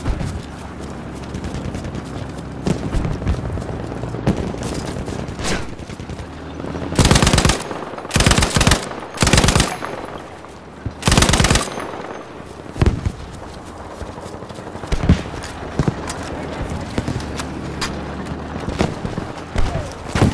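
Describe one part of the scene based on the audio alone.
Gunfire crackles and thuds in the distance.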